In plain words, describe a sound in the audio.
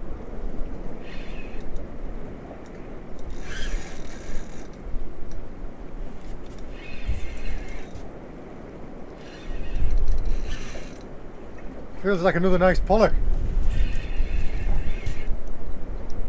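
A fishing reel whirs in short bursts as line is wound in.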